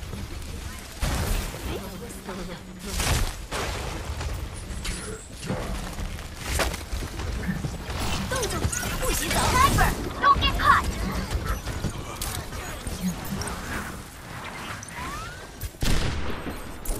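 A rifle fires sharp, loud shots now and then.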